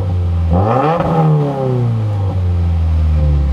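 A car engine revs sharply and then drops back.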